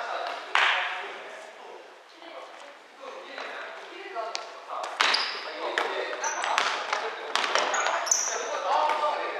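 Young men shout to each other in a large echoing gym.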